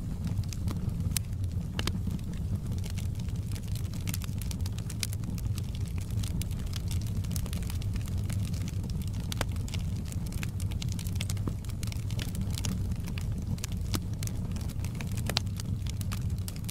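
Burning logs crackle and pop sharply throughout.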